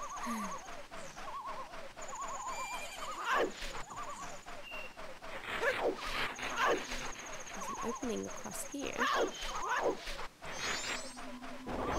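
Cheerful, bouncy video game music plays throughout.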